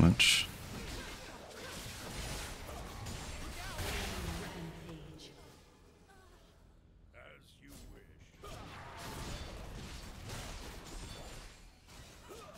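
Video game sword clashes and spell effects burst.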